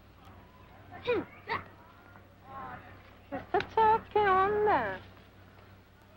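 Young women talk with animation nearby.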